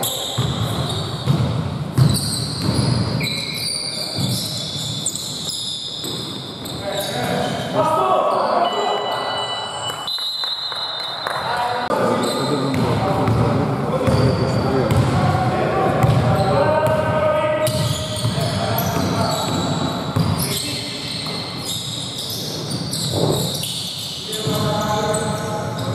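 Men call out to each other in a large echoing hall.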